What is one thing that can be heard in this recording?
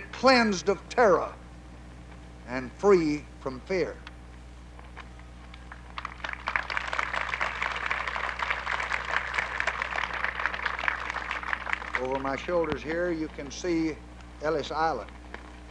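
A man speaks slowly and formally through a microphone, outdoors, pausing between phrases.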